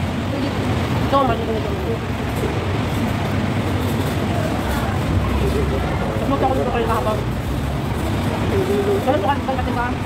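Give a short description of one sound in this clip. Women chat with one another at close range, outdoors.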